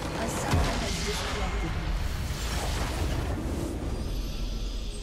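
A loud magical explosion crashes and rumbles.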